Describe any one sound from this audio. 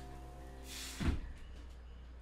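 A person drops from a bar and lands on the floor with a heavy thud.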